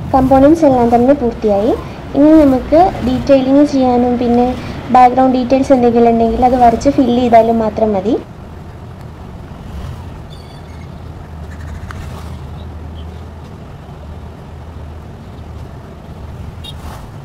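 A paintbrush softly strokes across paper.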